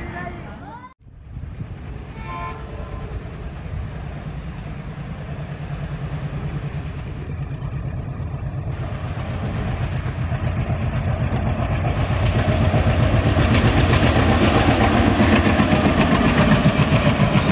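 A diesel locomotive engine throbs as it approaches.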